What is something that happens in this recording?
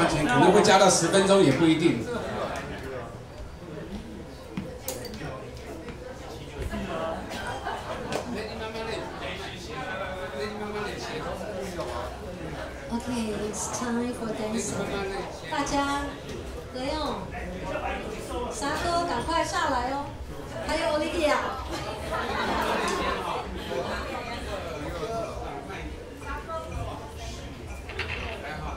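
Several men talk casually nearby in a large room.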